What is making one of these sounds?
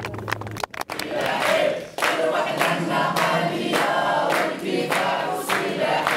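A group of people clap their hands in a steady rhythm indoors.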